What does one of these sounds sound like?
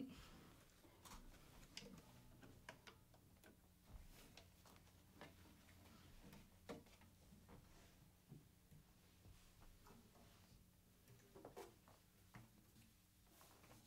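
A guitar is handled, with soft knocks and taps.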